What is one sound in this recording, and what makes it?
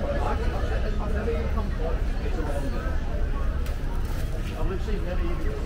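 People talk nearby outdoors.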